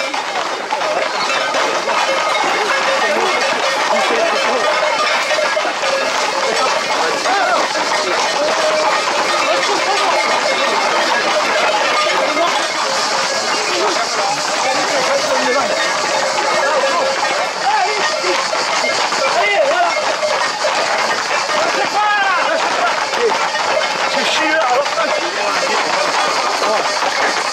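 A crowd of young men shouts and cheers close by, outdoors.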